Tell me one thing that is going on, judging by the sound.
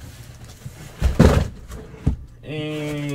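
Cardboard thumps and rumbles as a box is shifted.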